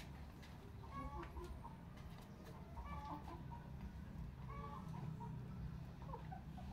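Chickens cluck and chirp nearby.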